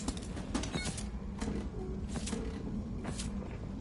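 A heavy metal door clanks open.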